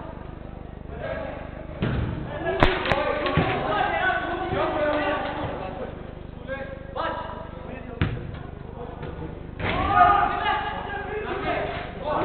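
Men shout and call out to each other during a game, echoing in a large indoor hall.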